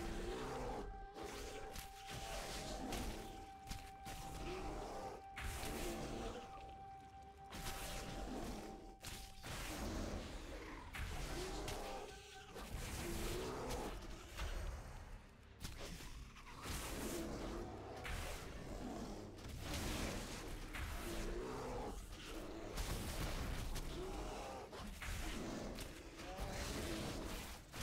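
Magic spells crackle and blows strike during a fight.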